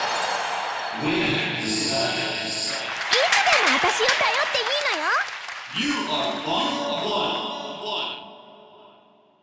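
A cheerful victory fanfare plays.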